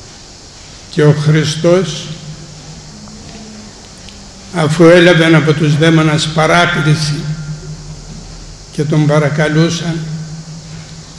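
An elderly man speaks slowly and solemnly into a microphone, pausing between phrases.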